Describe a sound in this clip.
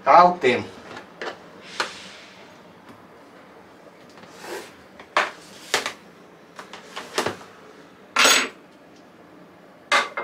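Plastic tubs clack as they are handled.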